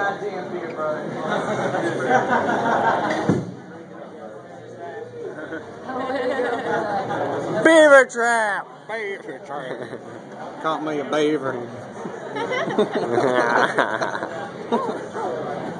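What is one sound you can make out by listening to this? A crowd of young men and women chatters and shouts nearby.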